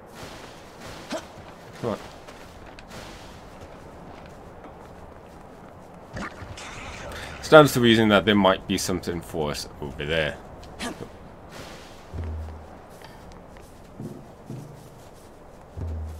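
Quick footsteps crunch across snow.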